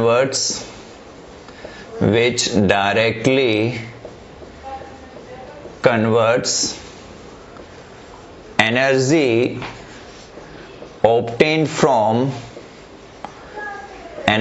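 A man speaks slowly and clearly, as if teaching, in short phrases with pauses.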